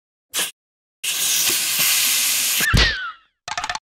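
Air hisses as a balloon inflates.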